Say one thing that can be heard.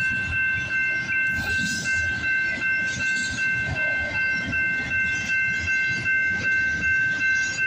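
A crossing bell rings steadily and rapidly.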